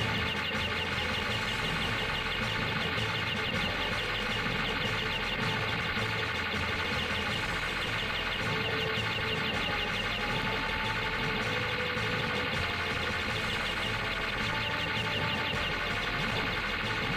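Upbeat video game music plays.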